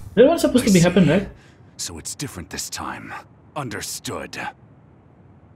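A young man speaks calmly and firmly, close by.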